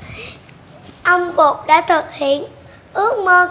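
A young girl speaks loudly and with animation close by.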